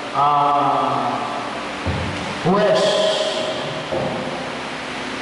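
A man sings a chant slowly through a microphone in an echoing hall.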